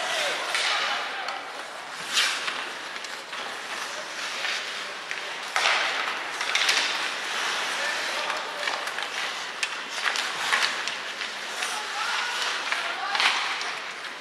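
Ice skates scrape and carve across the ice in an echoing rink.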